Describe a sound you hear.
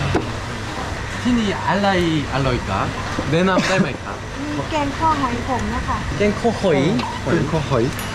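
A woman answers calmly from nearby.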